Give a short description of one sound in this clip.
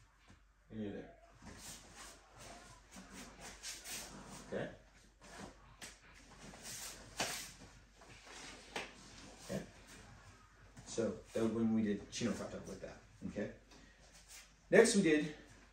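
Bare feet thump and shuffle on a padded floor.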